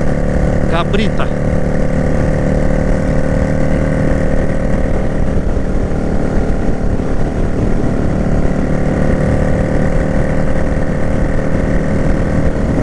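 A motorcycle engine rumbles steadily while riding at speed.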